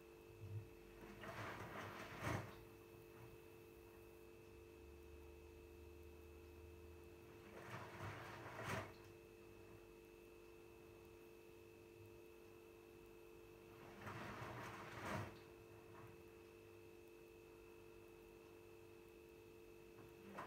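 A washing machine hums steadily.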